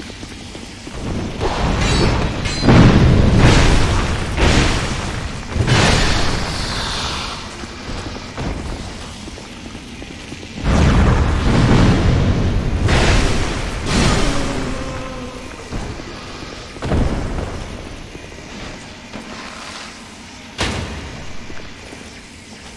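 Electricity crackles and sizzles.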